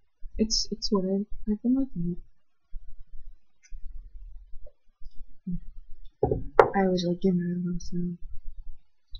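A young woman speaks casually, close to a microphone.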